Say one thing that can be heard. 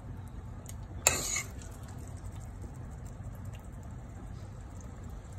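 A thick stew bubbles and simmers.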